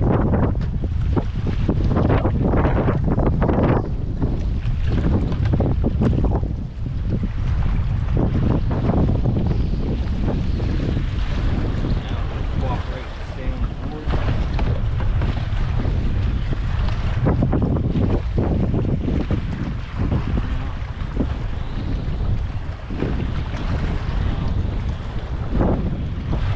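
Water laps and splashes against a small boat.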